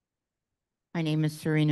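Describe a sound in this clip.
An older man speaks into a microphone.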